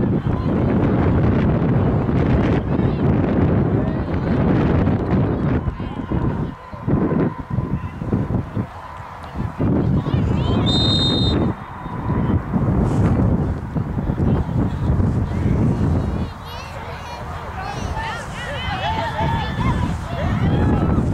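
Wind blows hard across an open outdoor space.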